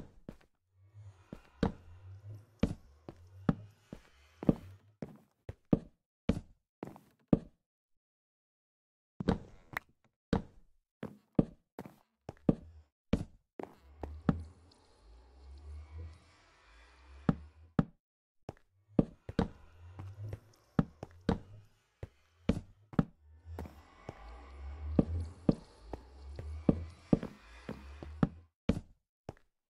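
Wooden blocks are set down with quick, sharp knocks.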